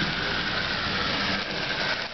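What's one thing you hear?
A model train rumbles along its track.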